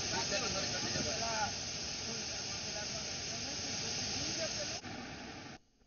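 A waterfall roars and rushes loudly.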